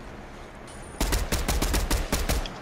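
Rapid gunshots ring out in quick bursts.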